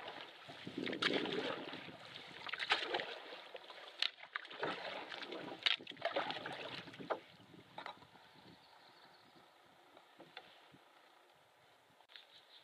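Water laps gently against the side of a canoe.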